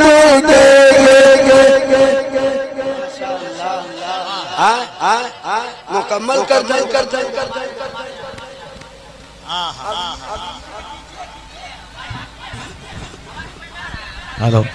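A man sings expressively through a microphone over loudspeakers, holding long notes.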